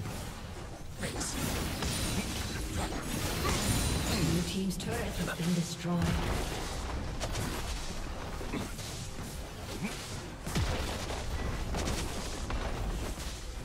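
Game spell effects crackle and blast in a battle.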